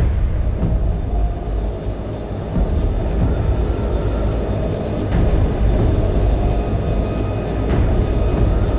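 Large airship engines drone with a deep, steady rumble.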